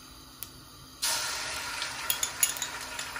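Garlic sizzles as it drops into hot oil.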